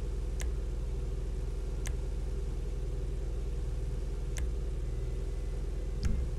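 A sports car engine idles with a low, steady rumble.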